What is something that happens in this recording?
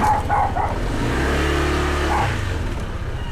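A motorcycle engine revs up briefly and settles back.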